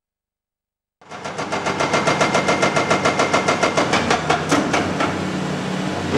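A hydraulic breaker hammers rapidly against rock, echoing in a tunnel.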